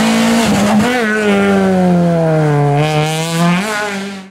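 A rally car engine revs up and down through the gears as the car speeds away around a bend.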